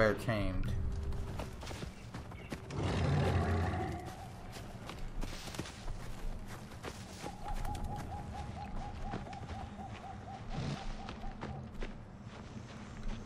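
Footsteps rustle through dry brush and leaves.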